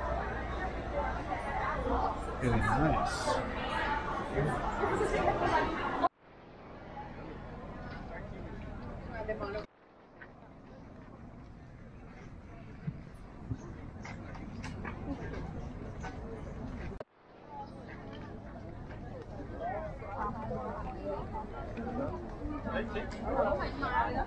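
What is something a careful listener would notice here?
A crowd of people chatters and murmurs nearby, outdoors.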